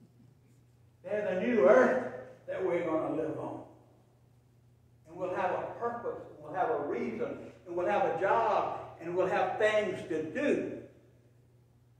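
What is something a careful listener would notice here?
A middle-aged man preaches with animation through a microphone in an echoing hall.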